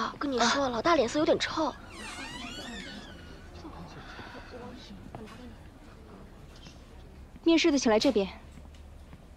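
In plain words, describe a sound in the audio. A young woman talks quietly nearby.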